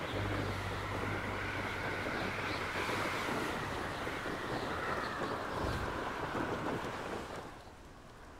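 Wind rushes steadily past a broom flying fast through the air.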